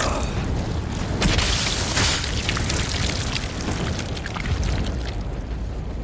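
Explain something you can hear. Flames roar and crackle loudly.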